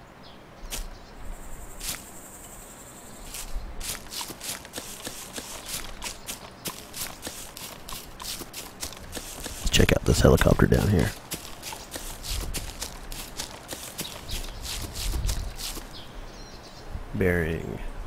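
Footsteps run through grass and undergrowth.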